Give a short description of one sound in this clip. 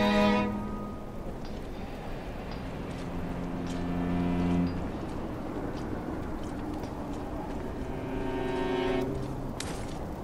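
Footsteps scuff softly on stone.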